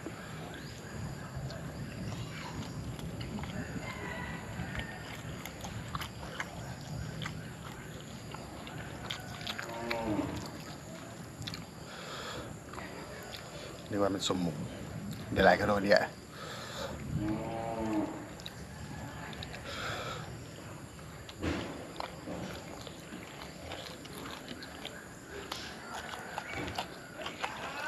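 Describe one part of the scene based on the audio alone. A man chews food loudly and smacks his lips close by.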